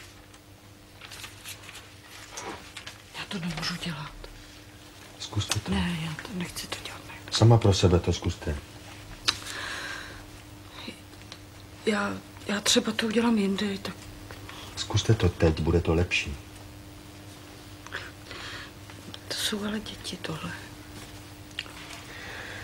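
A woman speaks in an upset voice, close by.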